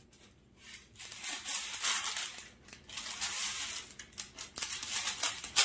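Paper rustles as it is pulled from a box and torn.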